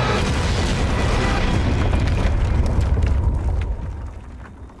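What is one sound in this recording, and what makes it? A loud crash roars and rumbles.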